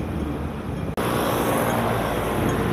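A motor scooter engine hums as it rides past on a street.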